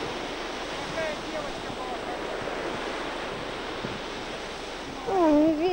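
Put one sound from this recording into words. A young child calls out in a high voice some way off.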